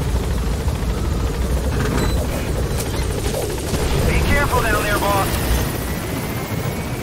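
A helicopter's rotor thumps and roars close by.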